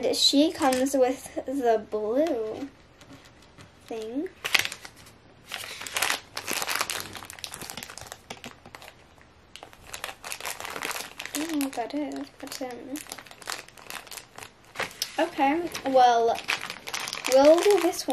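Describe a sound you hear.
A young girl talks calmly and closely.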